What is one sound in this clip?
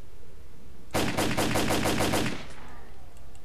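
A rifle fires a rapid burst of shots that ring out with a short echo.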